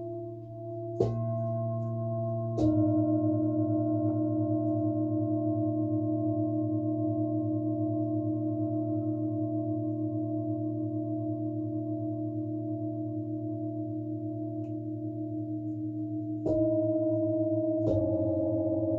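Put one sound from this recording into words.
Metal singing bowls are struck with a mallet, each strike sounding a bright bell-like note.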